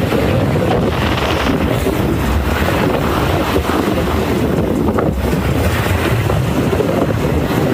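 A tugboat engine rumbles steadily over open water.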